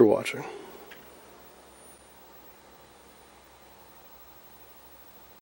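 An old television hums faintly and steadily.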